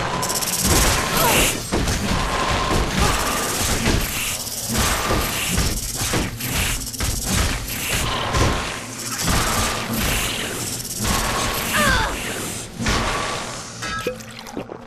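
Spell blasts crackle and burst in quick succession.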